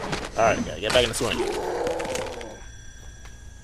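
Bones crunch and flesh splatters wetly.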